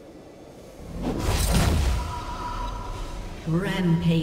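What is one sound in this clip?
A magical spell whooshes and shimmers.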